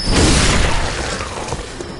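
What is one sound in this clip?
A heavy blade swings and strikes with a thud.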